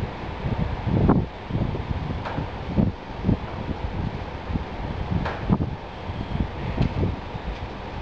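Metal knocks and clanks sharply against a metal vice.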